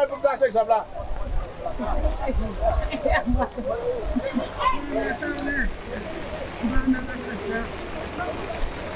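Rain patters steadily on wet pavement.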